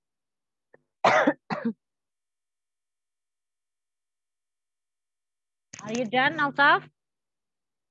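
A young woman speaks over an online call, with brief pauses between phrases.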